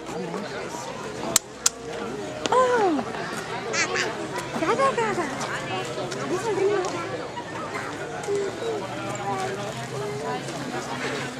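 A woman talks animatedly close by.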